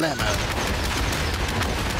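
A rock explodes with a loud blast.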